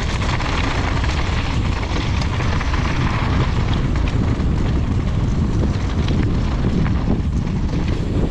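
Bicycle tyres crunch and rattle over loose gravel downhill.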